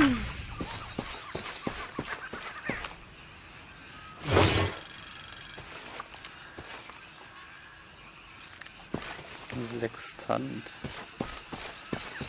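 Footsteps crunch on leaves and rocky ground.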